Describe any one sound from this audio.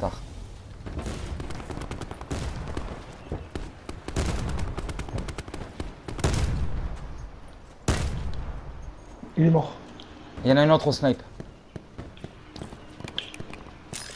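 Footsteps run quickly over grass and gravel.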